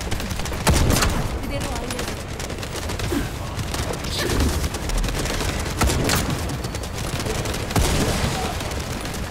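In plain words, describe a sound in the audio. Sharp impacts and blasts thud heavily.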